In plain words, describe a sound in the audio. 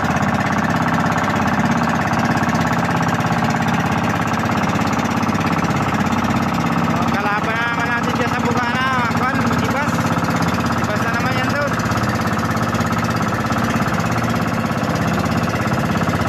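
A boat engine drones steadily throughout.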